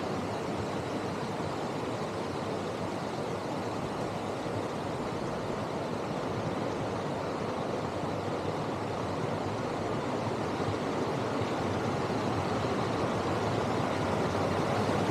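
A small waterfall splashes and rushes steadily nearby.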